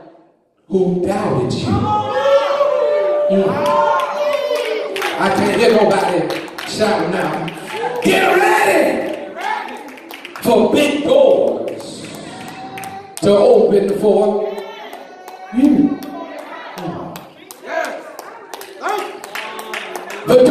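A man preaches with animation into a microphone, his voice echoing in a large room.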